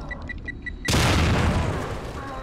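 A loud blast bursts close by.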